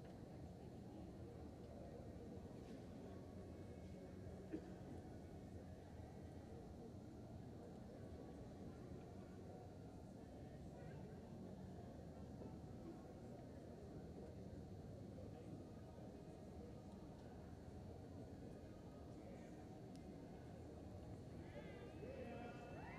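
A low, steady murmur fills a large echoing hall.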